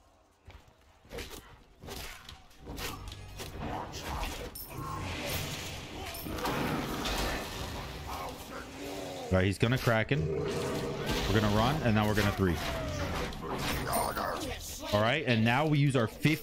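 Magic blasts whoosh and burst.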